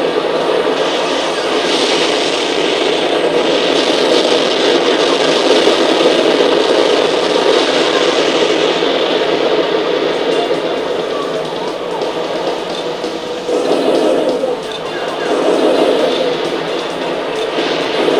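Loud thrusters roar steadily.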